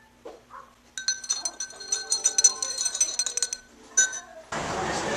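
A spoon clinks against a glass while stirring.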